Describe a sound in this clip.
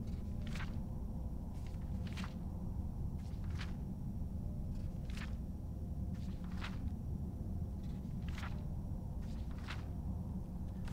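Book pages turn with soft, brief rustles.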